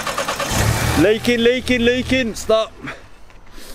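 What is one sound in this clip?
A car engine revs sharply several times.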